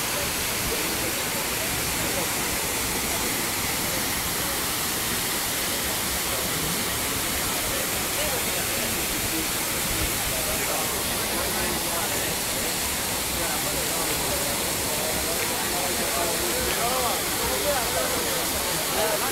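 Water splashes and rushes steadily over rocks into a pool.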